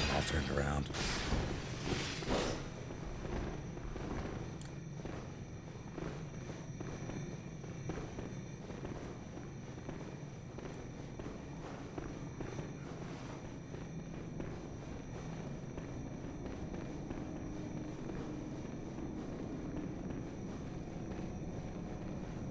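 Footsteps run quickly over stone floors.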